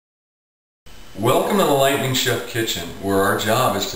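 A middle-aged man speaks calmly to the listener, close by.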